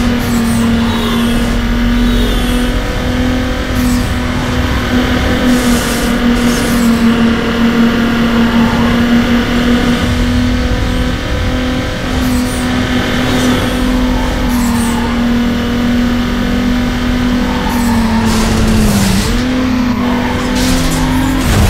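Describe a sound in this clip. A racing car engine drones steadily at high revs, dipping briefly as it shifts gear.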